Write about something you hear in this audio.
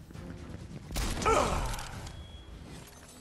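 A chest bursts open with a sparkling jingle.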